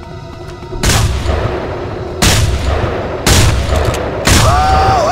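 Loud gunshots boom one after another, each followed by a long echoing rumble.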